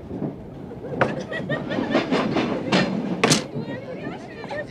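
A wooden door slides and knocks open nearby.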